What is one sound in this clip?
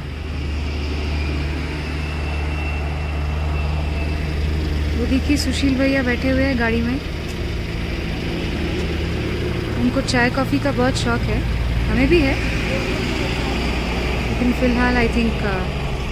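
A heavy truck engine rumbles low and steady nearby.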